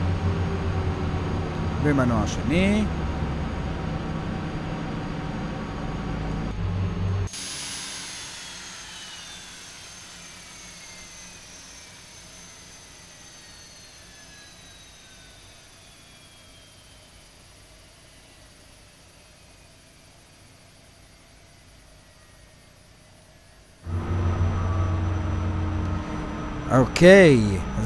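A jet engine hums steadily, heard from inside a cockpit.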